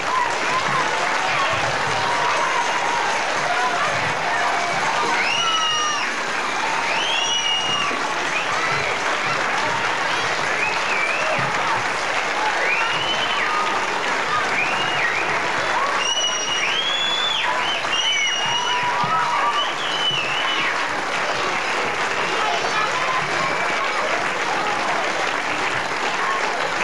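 A large choir of children sings loudly in a large echoing hall.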